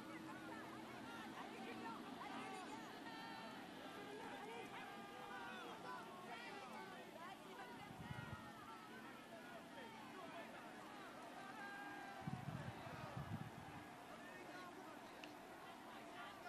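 A crowd of spectators cheers along the roadside.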